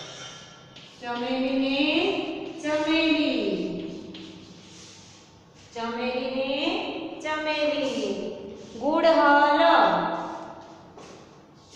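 A young woman reads out loudly and clearly nearby.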